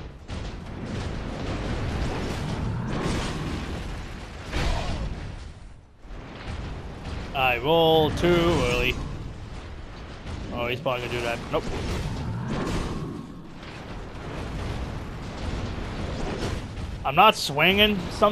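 Heavy greatswords swing and clash in a fight.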